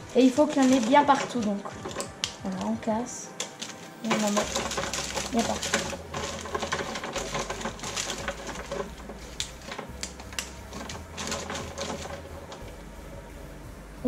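Baking paper rustles as chocolate pieces are pressed into a tin.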